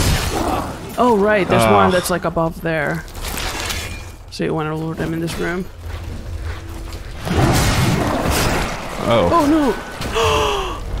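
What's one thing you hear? A large beast growls and roars loudly.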